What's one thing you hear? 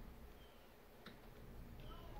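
A remote control button clicks.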